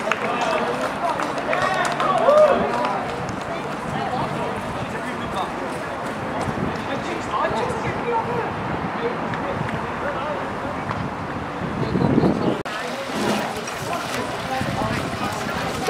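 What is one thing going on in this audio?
A crowd of people shouts and cheers outdoors.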